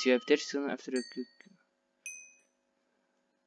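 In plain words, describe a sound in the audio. Short electronic beeps tick off a countdown.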